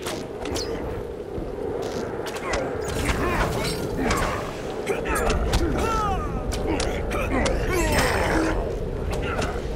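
Metal blades clash and strike in a fight.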